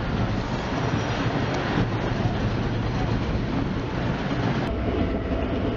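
Loud wind rumbles against a microphone outdoors.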